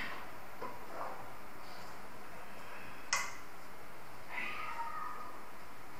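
A metal ladder clanks and creaks as a man climbs it.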